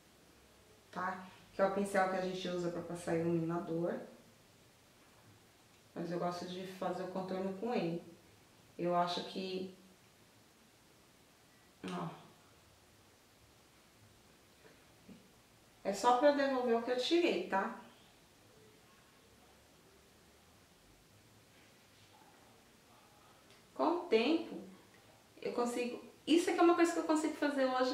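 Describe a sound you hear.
A woman speaks calmly and close by, in short bursts with pauses.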